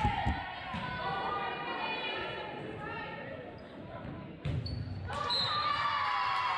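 Young women call out and shout during play.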